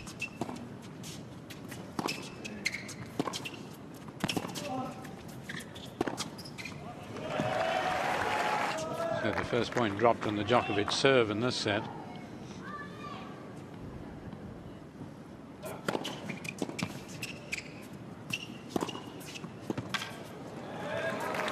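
Tennis balls are struck back and forth with sharp pops of rackets.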